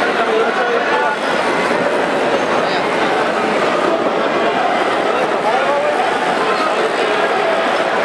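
A large crowd cheers and shouts steadily in an echoing hall.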